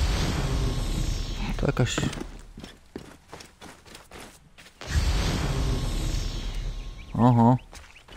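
Footsteps crunch through dry grass and dirt.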